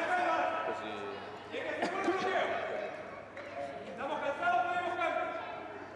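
A man calls out loudly from the sideline.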